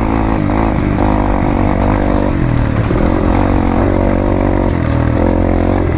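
A dirt bike engine revs and drones up close.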